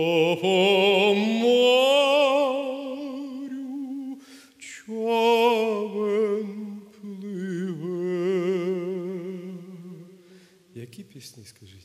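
A man sings with vibrato into a microphone in a large hall.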